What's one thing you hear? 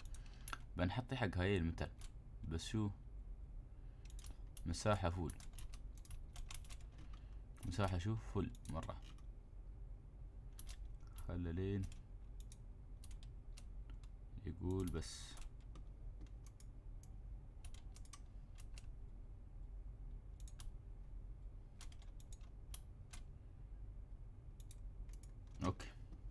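Short game clicks sound as fence pieces are placed.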